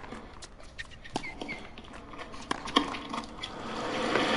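A tennis ball is struck with sharp pops.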